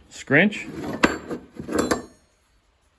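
A metal tool clinks as it is picked up from a wooden surface.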